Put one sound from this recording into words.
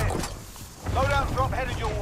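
A smoke flare hisses.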